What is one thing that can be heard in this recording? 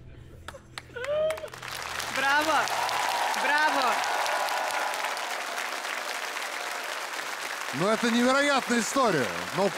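People whoop and shout joyfully.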